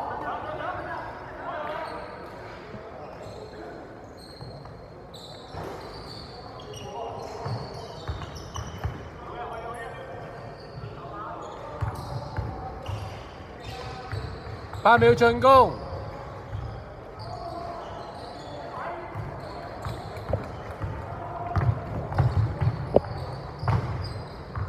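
A basketball bounces on a wooden court in a large echoing hall.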